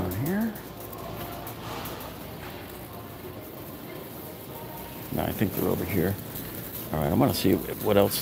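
A shopping cart rattles as it rolls over a smooth floor.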